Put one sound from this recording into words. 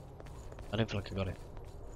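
A sword swings through the air with a swoosh.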